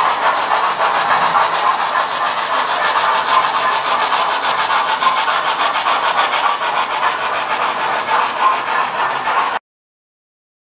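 Model trains rumble steadily along their tracks, with wheels clicking fast over the rail joints.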